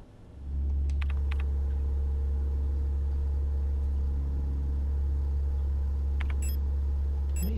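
Menu selections click with short blips.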